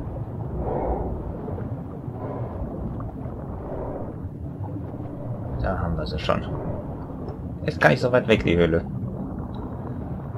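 Bubbles gurgle and fizz in water.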